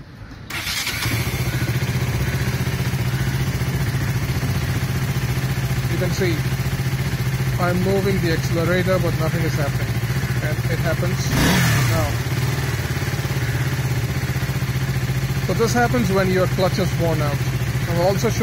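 A motorcycle engine idles with a steady low rumble.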